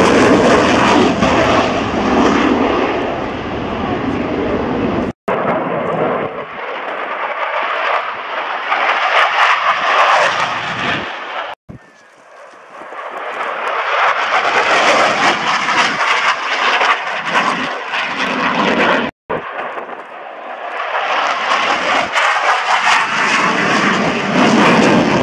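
A jet engine roars loudly overhead, swelling and fading as the jet passes.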